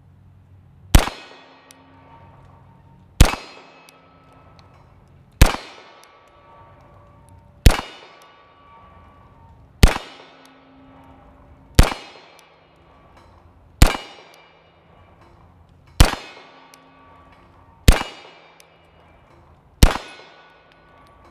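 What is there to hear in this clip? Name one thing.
A pistol fires single loud shots at a steady pace outdoors, each ringing out and fading.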